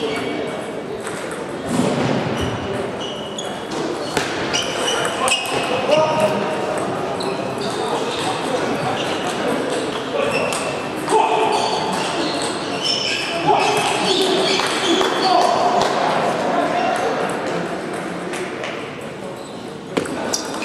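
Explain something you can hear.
A small plastic ball clicks sharply back and forth between paddles and a table.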